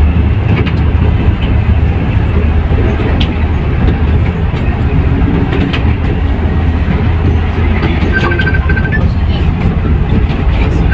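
The bus body rattles and clicks over the road.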